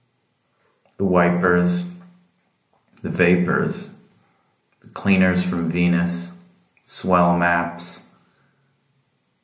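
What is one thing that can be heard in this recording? A middle-aged man speaks calmly and close by, in short phrases.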